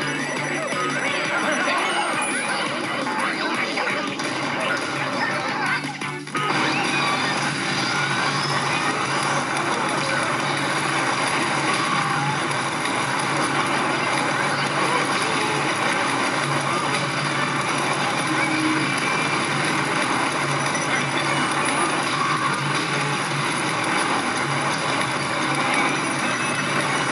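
Game music plays steadily throughout.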